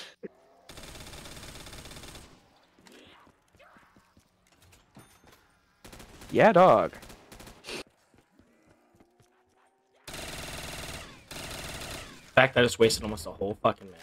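Gunfire from a rifle bursts in quick shots.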